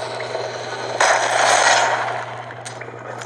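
A creature snarls and roars loudly.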